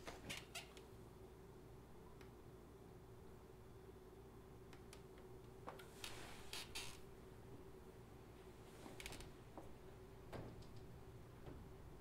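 A woman handles small objects on the floor, with light clicks and rustles.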